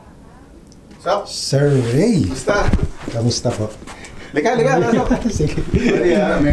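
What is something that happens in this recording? A man speaks loudly and animatedly, close by.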